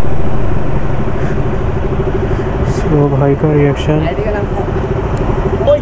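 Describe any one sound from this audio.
A motorcycle engine idles with a steady rapid putter close by.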